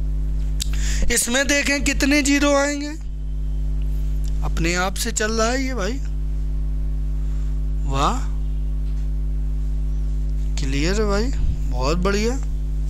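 A man speaks with animation into a clip-on microphone, close by.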